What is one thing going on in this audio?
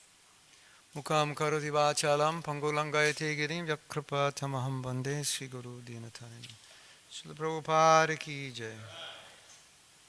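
A man chants slowly into a microphone, close and amplified.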